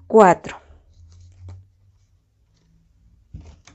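A playing card drops onto a cloth-covered table with a soft slap.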